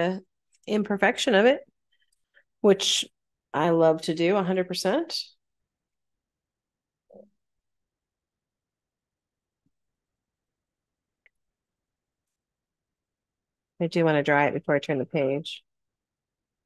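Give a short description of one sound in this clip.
A woman talks calmly over an online call, in short bursts.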